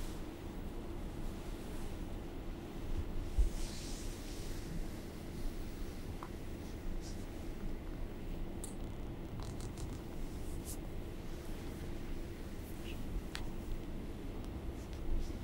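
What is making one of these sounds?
A long cloth swishes through the air.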